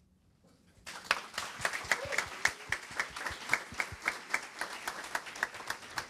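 A crowd applauds in a large room.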